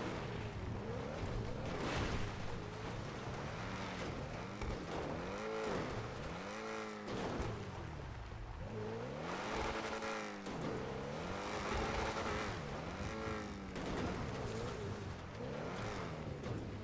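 Tyres crunch and scrape over rough ground.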